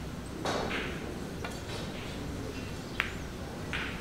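A cue strikes a ball with a soft click.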